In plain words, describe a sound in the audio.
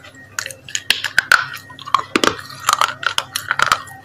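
A young woman bites into soft fruit with a wet crunch.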